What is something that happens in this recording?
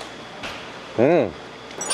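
A young woman makes a short, high, excited sound close by.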